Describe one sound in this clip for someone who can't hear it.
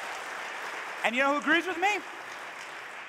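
A man in the audience whoops loudly.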